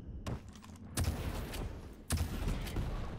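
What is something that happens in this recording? A gun fires sharp shots close by.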